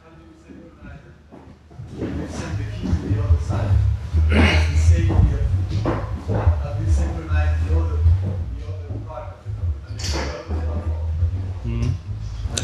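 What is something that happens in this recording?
A man speaks steadily into a microphone, heard through loudspeakers.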